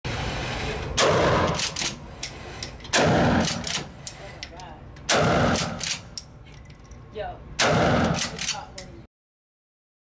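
A shotgun fires loud blasts that echo in an indoor range.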